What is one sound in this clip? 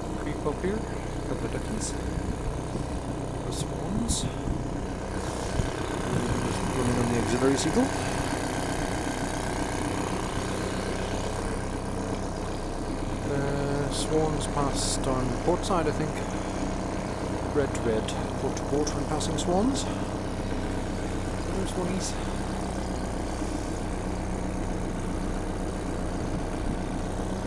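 A small outboard motor hums steadily close by.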